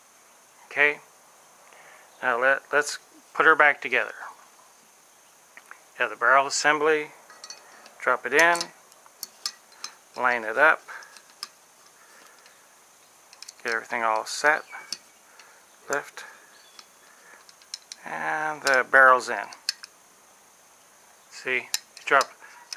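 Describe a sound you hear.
Metal parts click and slide together as they are handled.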